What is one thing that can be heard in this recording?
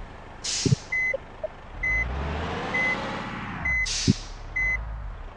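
A reversing alarm beeps in a steady rhythm.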